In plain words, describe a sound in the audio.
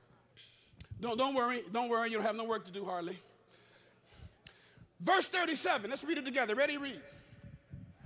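A man speaks with fervour through a microphone in a large echoing hall.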